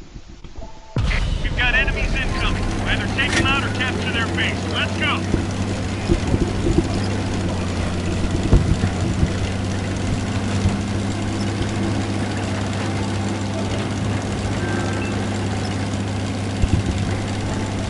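A tank engine rumbles with a steady low drone.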